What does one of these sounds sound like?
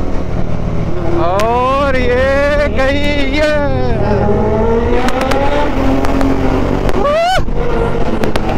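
A motorcycle engine revs up and down, its pitch rising and falling.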